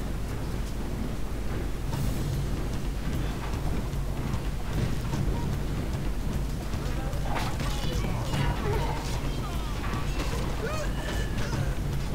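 Armour and weapons clatter among the marching soldiers.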